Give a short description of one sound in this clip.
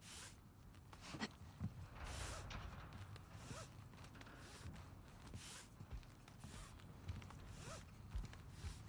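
Footsteps thud on a hollow deck.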